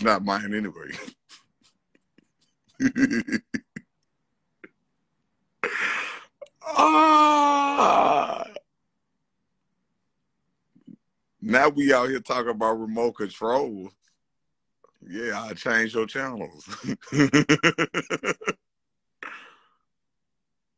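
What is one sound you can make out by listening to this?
A man talks with animation close to a phone microphone.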